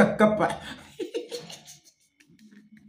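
A young man laughs briefly.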